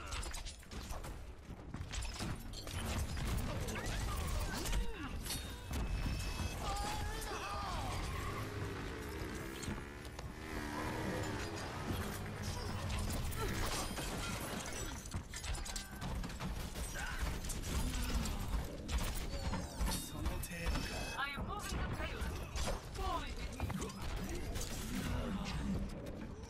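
Shuriken whoosh and clatter in quick bursts.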